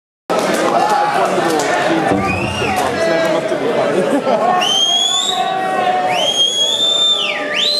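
A live rock band plays loudly in a large echoing hall.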